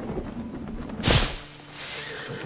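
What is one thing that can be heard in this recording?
A body lands with a heavy rustling thud.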